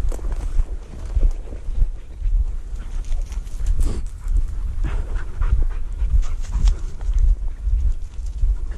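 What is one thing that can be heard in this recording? Wind rumbles and buffets loudly outdoors.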